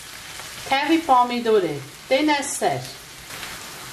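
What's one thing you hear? A wooden spoon stirs and scrapes food in a pan.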